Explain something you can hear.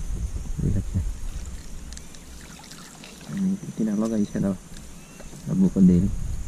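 Water plants rustle as weeds are pulled from shallow water.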